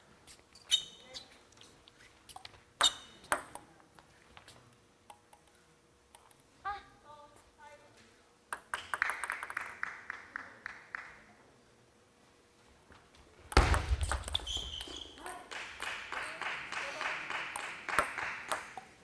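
A table tennis ball clicks sharply off paddles and the table.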